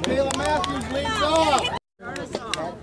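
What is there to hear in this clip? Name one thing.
Young girls chant and cheer loudly nearby.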